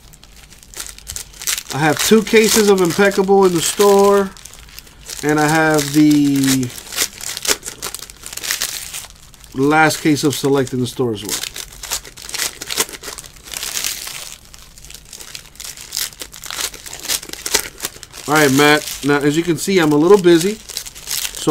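Foil wrappers crinkle and rustle as they are handled.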